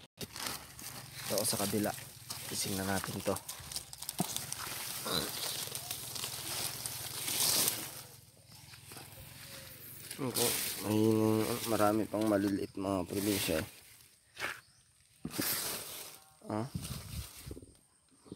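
Dry palm fronds rustle and crackle as they are moved.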